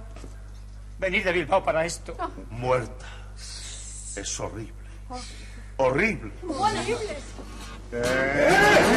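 Several men talk excitedly over one another.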